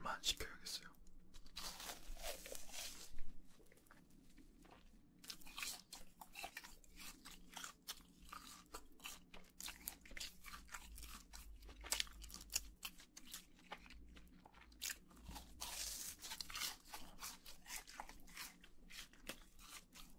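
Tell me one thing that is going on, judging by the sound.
A man chews crunchy food close to a microphone, with wet crackling bites.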